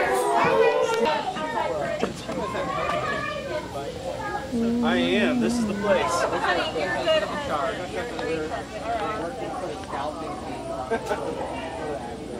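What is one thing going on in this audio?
Several adults talk casually nearby, outdoors.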